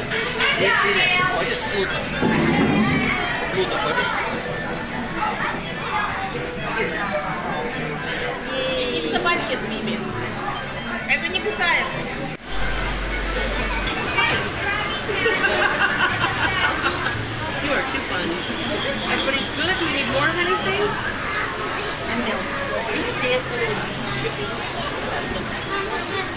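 Young girls chatter and giggle close by.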